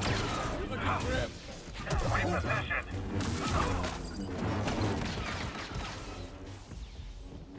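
Lightsabers clash and crackle in a fight.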